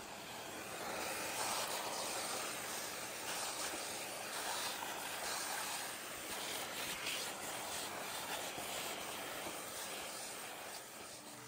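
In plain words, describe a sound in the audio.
A vacuum cleaner whooshes loudly as it sucks up debris.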